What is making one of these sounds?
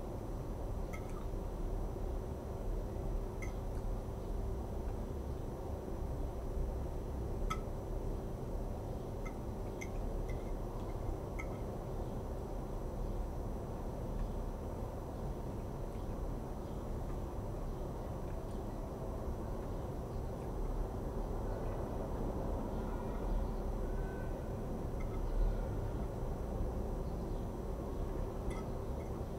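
Cutlery clinks and scrapes against a plate.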